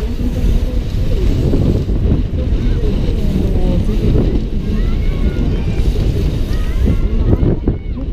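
Wind rushes and buffets loudly past the rider.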